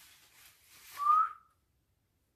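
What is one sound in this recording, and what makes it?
A young woman gives a short whistle.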